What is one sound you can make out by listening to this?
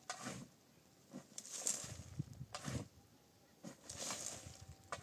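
Plastic sheeting rustles and crinkles in short bursts as it is pulled about.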